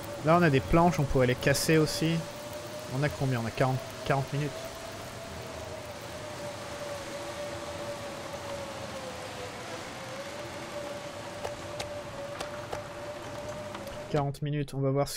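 Wind howls through a snowstorm.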